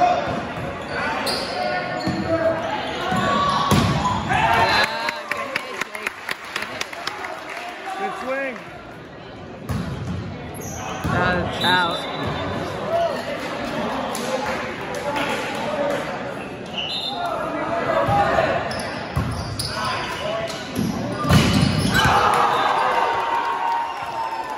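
A volleyball is struck by hands.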